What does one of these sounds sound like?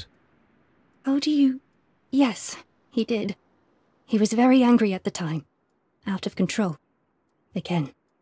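A young woman answers in an upset, strained voice up close.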